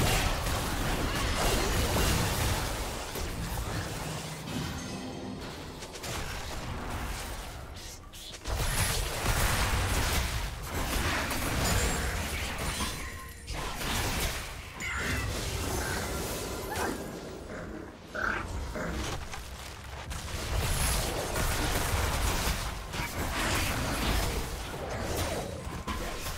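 Magic blasts whoosh and crackle in a fast video game fight.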